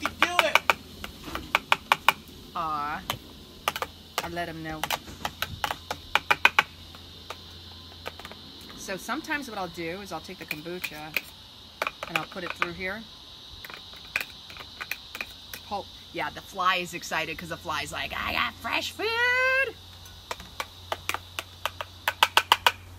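A spoon clinks and taps against a container.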